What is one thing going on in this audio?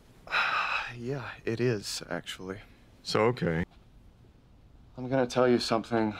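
A man talks with animation, close by.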